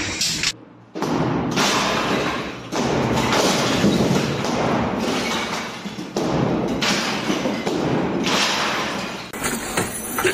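A sledgehammer smashes through a plaster wall with heavy crashes.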